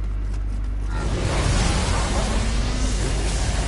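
A blast of magic roars and crackles.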